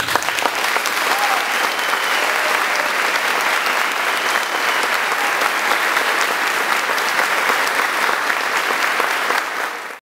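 A brass band plays loudly in an echoing hall.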